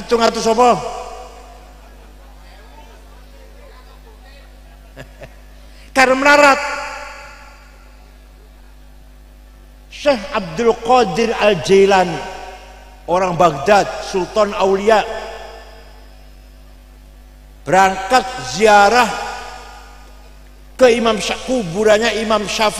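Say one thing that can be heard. An elderly man speaks slowly into a microphone, pausing between phrases.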